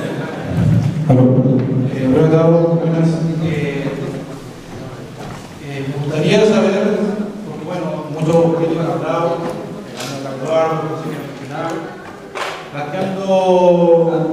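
A man speaks forcefully through a microphone in an echoing hall.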